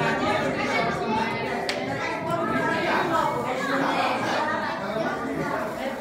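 A crowd of adults and children chatters in a room.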